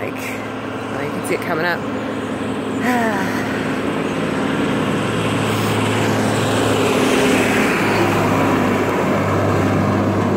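A truck approaches and rumbles by.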